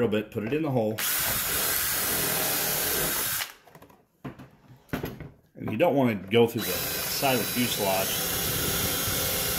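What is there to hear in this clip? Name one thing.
An electric drill whirs steadily as it bores into wood.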